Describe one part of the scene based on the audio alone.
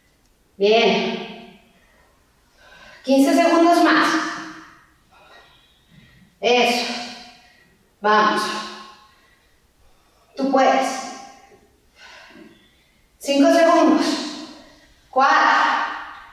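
A young woman speaks energetically in short bursts, close to a microphone.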